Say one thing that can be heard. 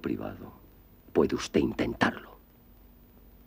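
A man speaks forcefully and close by.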